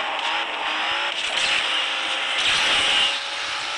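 A nitro boost whooshes.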